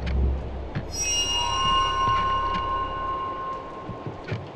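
A bright chime rings out and slowly fades.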